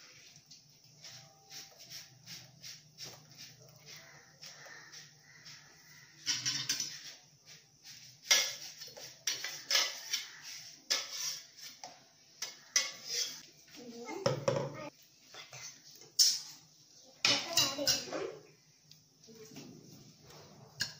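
Batter sizzles softly in a hot pan.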